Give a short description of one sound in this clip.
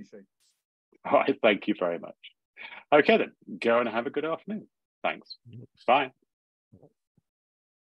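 An older man speaks cheerfully over an online call.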